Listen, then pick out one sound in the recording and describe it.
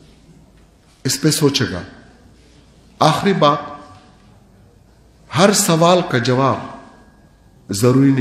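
An older man speaks calmly in short phrases through a microphone in an echoing hall.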